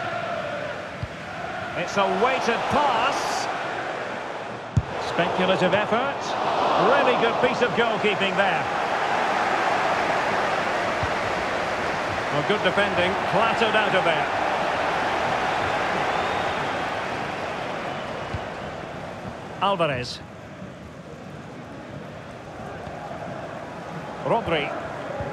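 A stadium crowd roars and cheers in a large open space.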